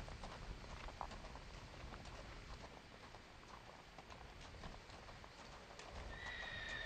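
Horse hooves crunch steadily on gravel.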